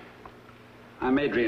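A middle-aged man speaks up firmly.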